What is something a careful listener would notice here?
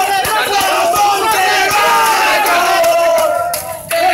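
A crowd of men shouts and cheers excitedly close by.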